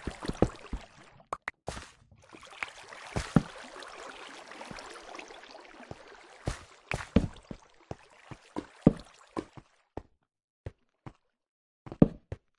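Footsteps thud on stone in an irregular rhythm.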